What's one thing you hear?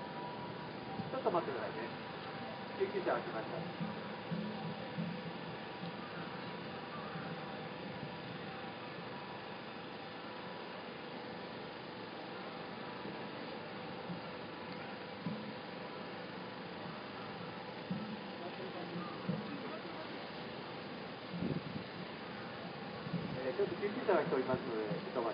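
People talk quietly nearby.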